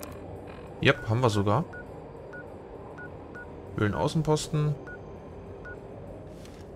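A handheld electronic device gives short, soft beeps.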